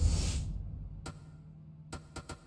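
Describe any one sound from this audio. Short electronic clicks sound as a game menu is browsed.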